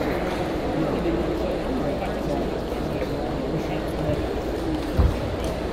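Table tennis balls click on tables and bats.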